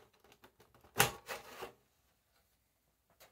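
A plastic casing is lifted off with a clatter.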